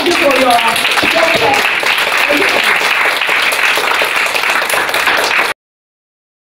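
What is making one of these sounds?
An audience claps steadily.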